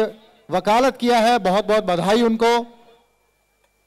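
A man speaks loudly over a loudspeaker.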